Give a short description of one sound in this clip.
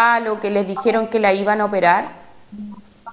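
A woman speaks calmly into a close microphone.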